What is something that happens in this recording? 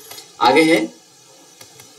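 A young man speaks into a close microphone.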